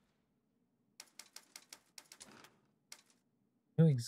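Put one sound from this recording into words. Short menu clicks tick in quick succession.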